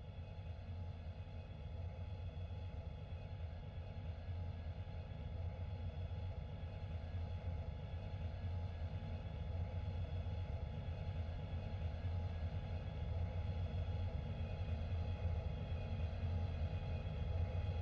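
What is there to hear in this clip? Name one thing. A jet airliner's engines roar steadily as it approaches, growing slowly louder.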